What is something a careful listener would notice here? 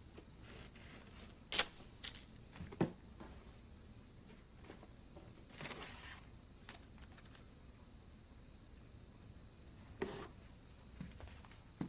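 Objects rustle and clatter inside a cardboard box.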